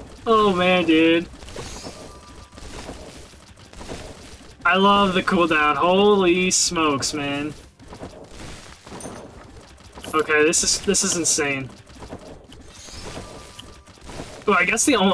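Blades swish and slash repeatedly in a video game.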